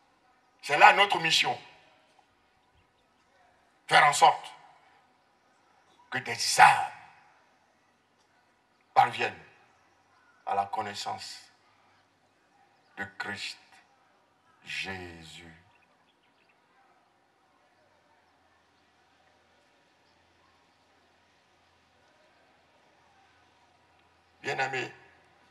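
A man preaches forcefully into a microphone over loudspeakers, in short bursts with pauses.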